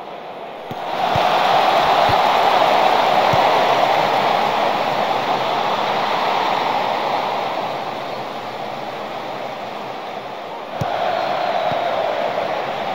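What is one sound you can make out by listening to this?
A large stadium crowd roars and cheers, swelling loudly and then easing off.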